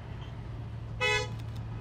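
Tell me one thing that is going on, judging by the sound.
A locomotive horn gives a short toot.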